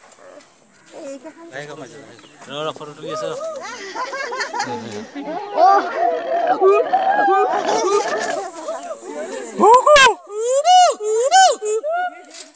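A gibbon gives loud, rising whooping calls again and again, close by.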